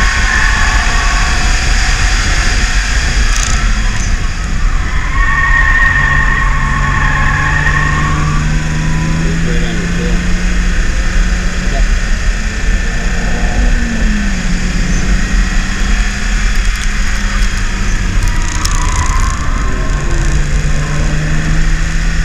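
A car engine roars loudly from inside the cabin, rising and falling in pitch as the car speeds up and slows down.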